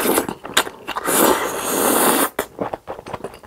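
A young man slurps noodles loudly, close to a microphone.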